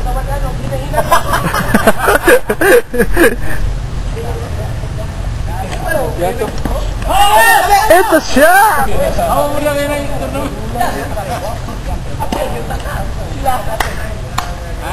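Men call out and talk to each other outdoors.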